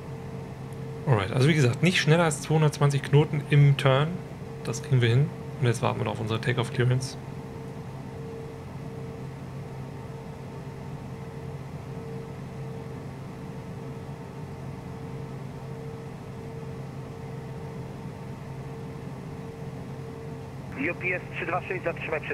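An aircraft engine hums steadily.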